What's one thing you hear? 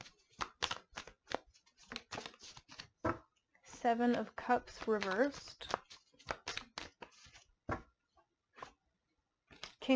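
Playing cards are laid down softly on cloth.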